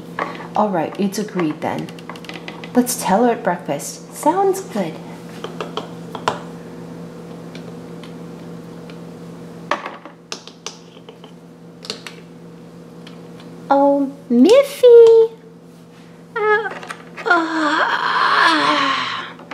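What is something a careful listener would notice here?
Small plastic toy figures tap and click against a plastic dollhouse.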